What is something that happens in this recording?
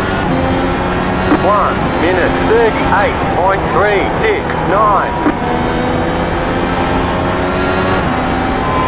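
A racing car engine drones loudly.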